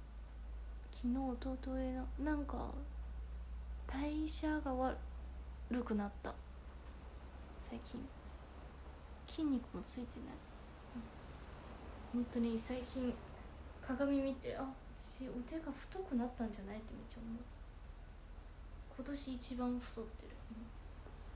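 A young woman talks calmly and casually, close to the microphone, with pauses.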